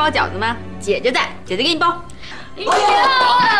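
A young woman speaks tearfully, close by.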